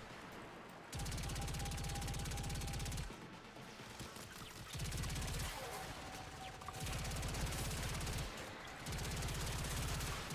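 A rapid-fire gun shoots in long, quick bursts.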